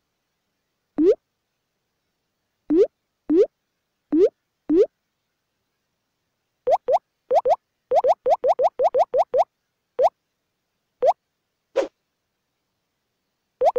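Short, rising bubbly pops sound again and again as pins slide open.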